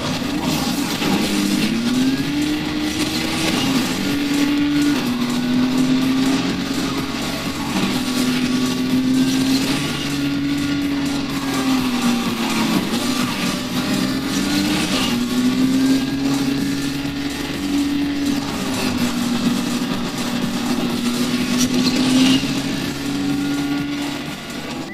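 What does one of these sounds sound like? A racing car engine roars and shifts pitch as it speeds up and slows down.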